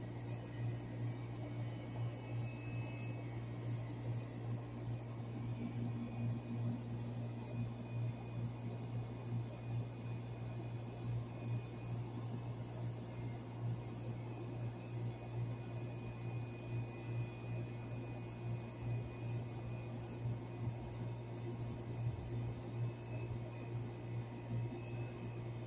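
An outdoor air conditioner unit hums steadily with a low, throbbing drone.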